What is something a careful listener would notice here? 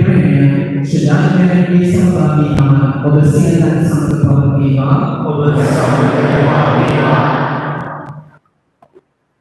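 A man chants a prayer through a loudspeaker in an echoing hall.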